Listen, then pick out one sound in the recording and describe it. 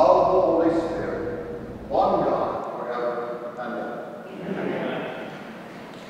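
An elderly man speaks calmly through a microphone in a large echoing hall.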